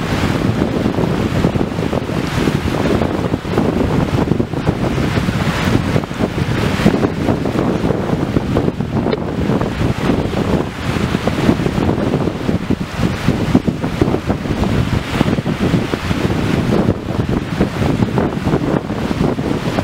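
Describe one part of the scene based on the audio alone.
Waves wash onto the shore.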